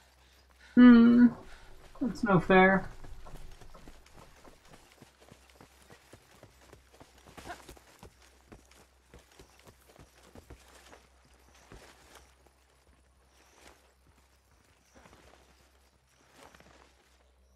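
Footsteps pad quickly over soft sand.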